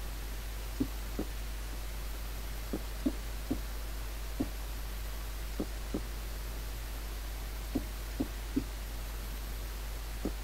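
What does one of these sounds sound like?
Footsteps thud softly on stone at an uneven pace.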